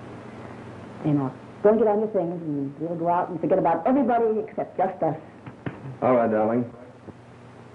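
A woman speaks emotionally at close range, heard through a thin, hissy old recording.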